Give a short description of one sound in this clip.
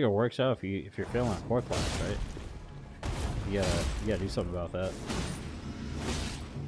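A blade slashes and clashes with metal.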